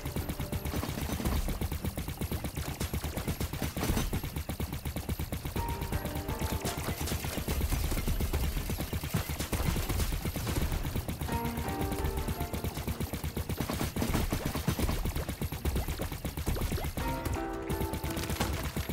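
Rapid blaster shots fire again and again.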